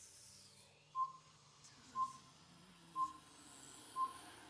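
A short electronic beep sounds once a second as a countdown ticks down.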